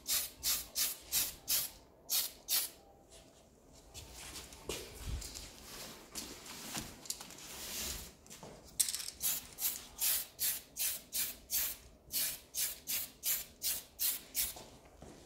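An aerosol spray can hisses in short, rapid bursts, close by.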